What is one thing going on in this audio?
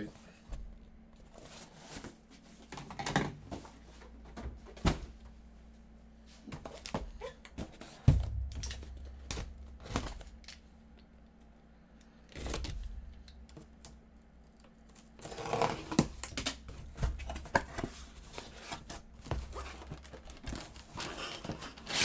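A cardboard box scrapes and thumps as it is handled on a table.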